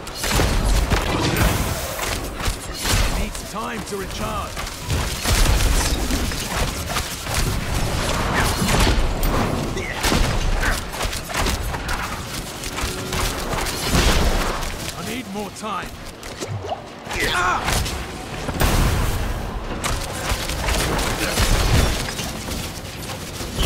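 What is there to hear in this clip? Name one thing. Spell blasts and impacts crash and boom in a fast fight.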